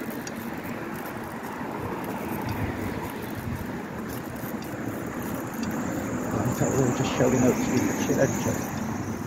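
Bicycle tyres roll over pavement and paving bricks.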